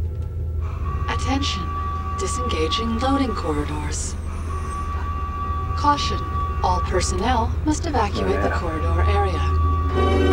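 A man speaks tensely in a low voice, close by.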